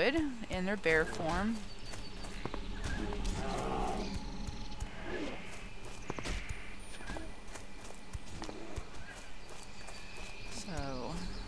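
Footsteps tread steadily along a stone path.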